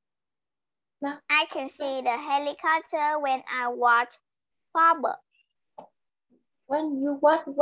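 A young girl speaks through an online call.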